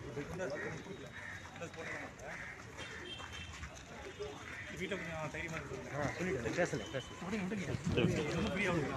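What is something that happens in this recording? Several men talk over one another close by, outdoors.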